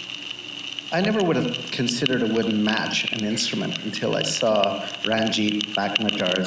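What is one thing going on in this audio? A middle-aged man speaks calmly through a headset microphone.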